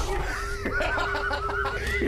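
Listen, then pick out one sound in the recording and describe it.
A middle-aged man laughs loudly nearby.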